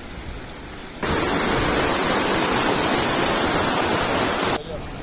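Whitewater roars loudly close by.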